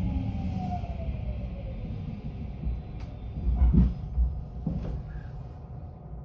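A train rumbles along the tracks and slows to a stop.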